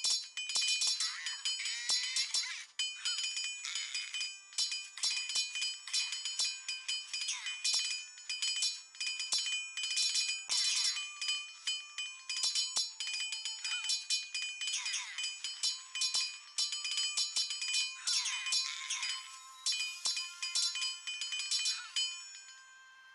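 Swords clash and clang rapidly in a battle.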